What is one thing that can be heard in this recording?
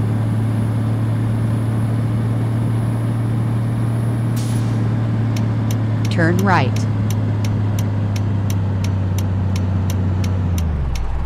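A truck engine hums steadily and drops lower near the end.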